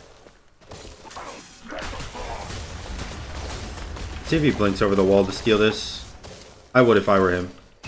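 Magical blasts and whooshes crash in a game battle.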